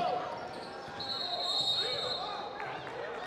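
A referee blows a short whistle.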